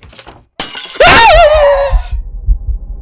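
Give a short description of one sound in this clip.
A young man screams loudly and shrilly into a microphone.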